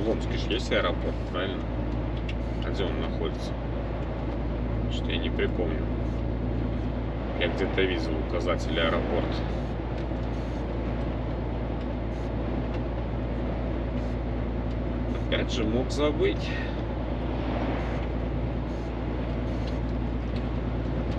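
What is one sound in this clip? A truck engine drones steadily from inside the cab.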